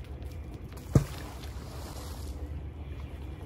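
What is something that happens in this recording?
A cast net splashes into the water.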